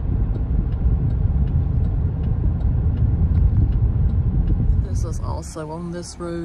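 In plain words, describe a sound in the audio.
A car rumbles steadily as it drives along a road.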